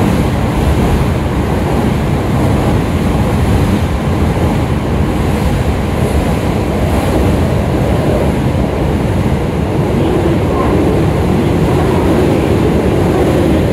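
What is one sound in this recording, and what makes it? A vehicle rumbles steadily as it crosses a bridge.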